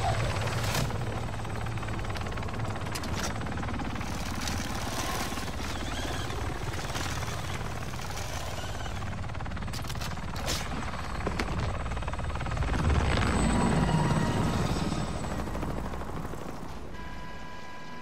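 A military helicopter hovers with its rotor thumping overhead.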